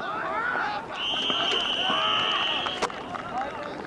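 A referee's whistle blows a long, steady blast.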